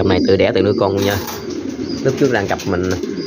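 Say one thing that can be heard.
A wire cage door rattles.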